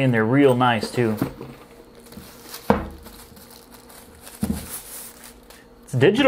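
A plastic bag crinkles as it is handled.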